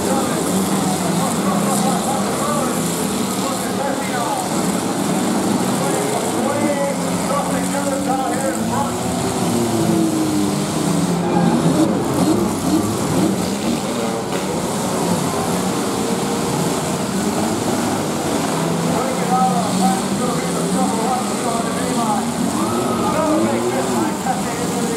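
Car engines roar and rev close by outdoors.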